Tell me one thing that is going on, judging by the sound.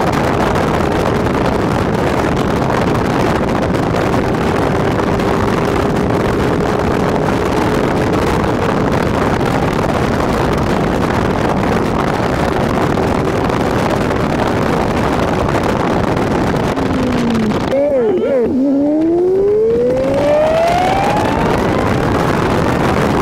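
Tyres hum steadily on a paved road as a car drives along.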